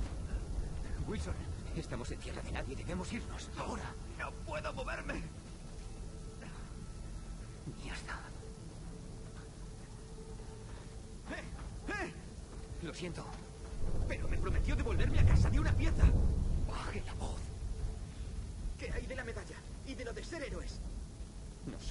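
A man speaks urgently in a low, tense voice.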